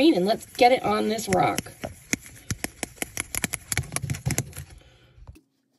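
A brush taps and scrapes quickly against a small plastic cup.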